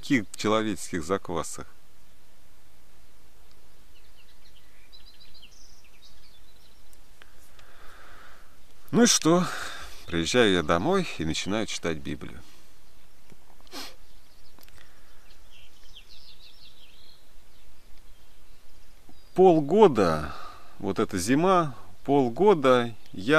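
A young man speaks calmly and close to the microphone, with pauses.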